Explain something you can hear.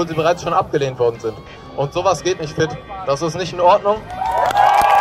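A man speaks loudly through a loudspeaker to an outdoor crowd.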